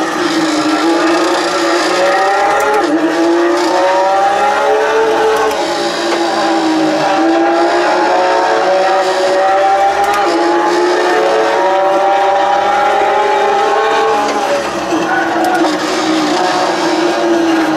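A simulated Porsche GT3 engine revs up and drops through gear changes over loudspeakers.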